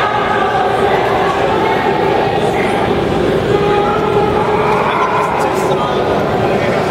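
A curling stone rumbles as it slides across ice in a large echoing hall.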